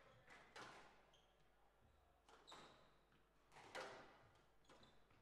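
A squash ball smacks against the walls and rackets with sharp echoing cracks.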